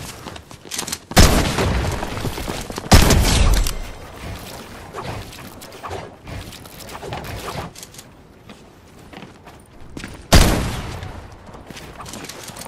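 Wooden walls are built with quick thuds in a video game.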